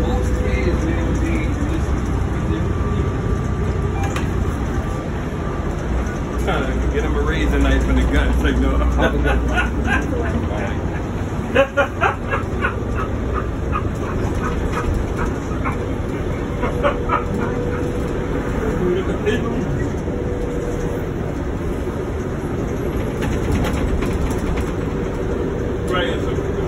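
A bus engine hums and rumbles steadily as the bus drives along.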